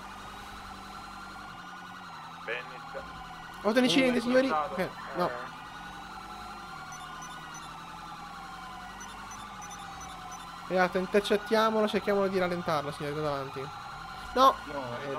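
Police sirens wail nearby, rising and falling.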